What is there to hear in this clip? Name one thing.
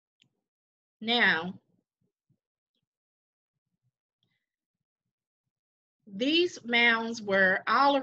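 A woman talks calmly over an online call.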